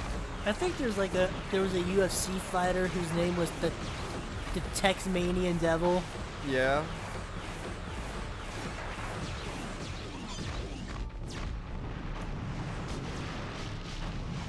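Explosions boom and crackle.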